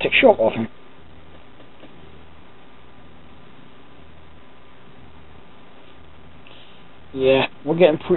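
A cat purrs softly up close.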